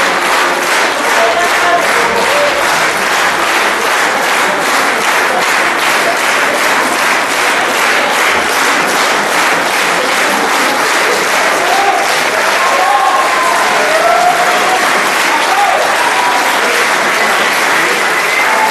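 An audience cheers and whoops.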